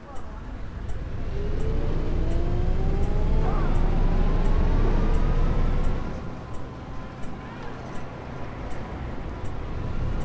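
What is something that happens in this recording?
A bus engine rumbles and revs up as the bus pulls away.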